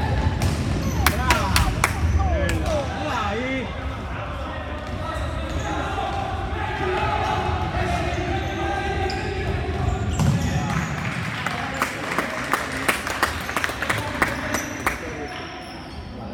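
A ball thuds against the floor and players' feet.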